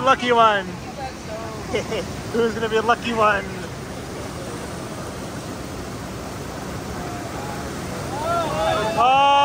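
Water rushes and churns loudly down a flume.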